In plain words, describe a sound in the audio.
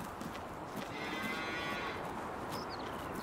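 A cow moos nearby.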